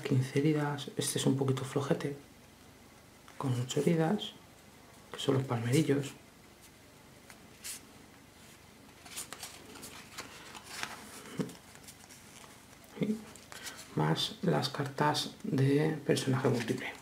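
Stiff cards rustle and slide against each other.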